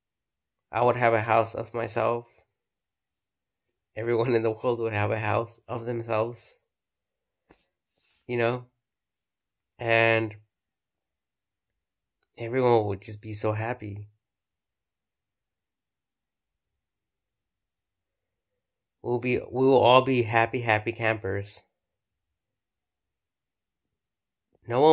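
A man talks calmly and close up, in short bursts with pauses.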